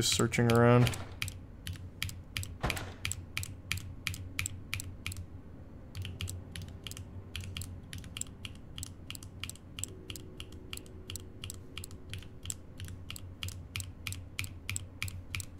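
A metal combination lock's dials click as they turn.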